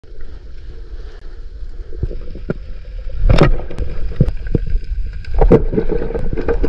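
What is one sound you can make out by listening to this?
Water swirls and gurgles with a muffled underwater sound.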